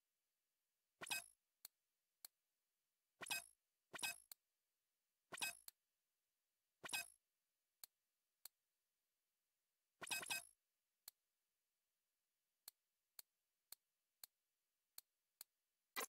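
A game menu clicks and swooshes as items are selected.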